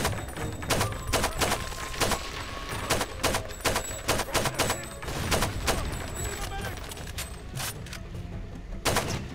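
A rifle fires rapid single shots that crack and echo.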